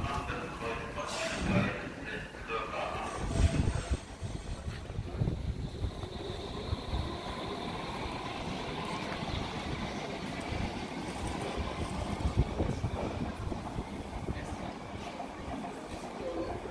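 Train wheels rumble and clatter over rail joints.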